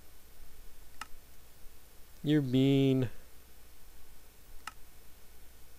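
A game menu button clicks softly.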